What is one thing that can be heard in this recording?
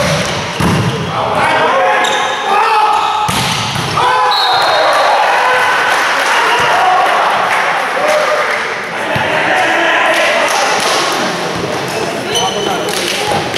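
Young men shout and cheer loudly nearby in an echoing hall.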